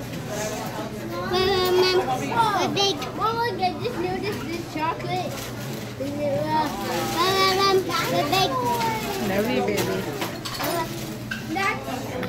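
A young boy speaks excitedly.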